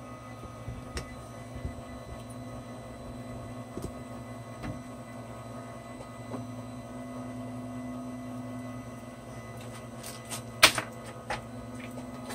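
Small clicks and ticks come from a machine's frame.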